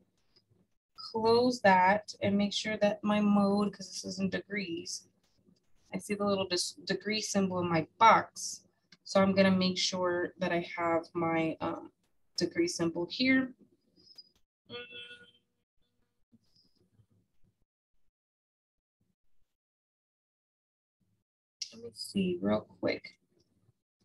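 A young woman talks calmly and explains, heard close through a microphone.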